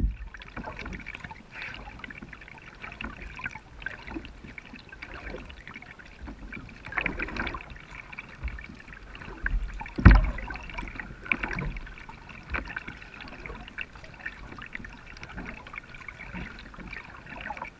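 A kayak paddle dips and splashes in calm water.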